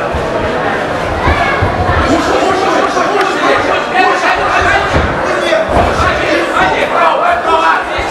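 Bodies thud onto a padded mat.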